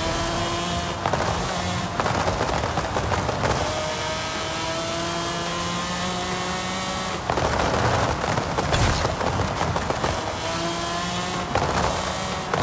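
A car engine crackles and pops as the revs drop between gear changes.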